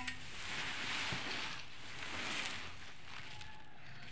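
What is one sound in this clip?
Grain pours out of a sack with a soft rushing hiss.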